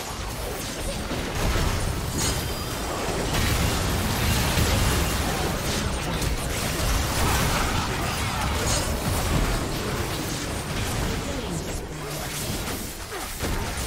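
Video game spell blasts and fighting sounds crackle and boom.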